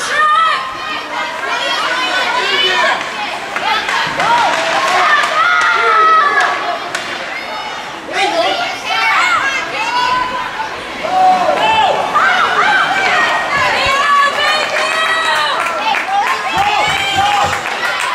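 Spectators shout and cheer throughout a large echoing rink.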